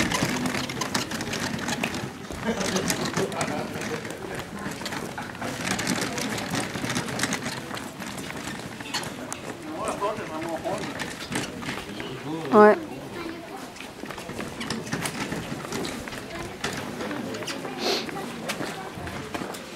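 Footsteps shuffle on wet cobblestones.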